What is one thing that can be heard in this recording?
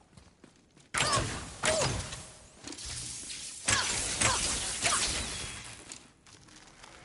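Magic bursts crackle and whoosh loudly.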